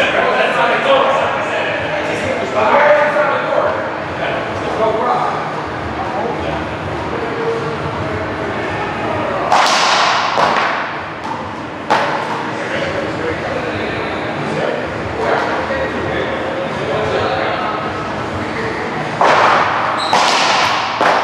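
Men talk and call out casually nearby.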